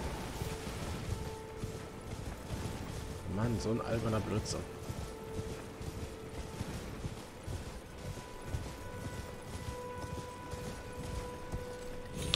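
Horse hooves thud steadily on grass.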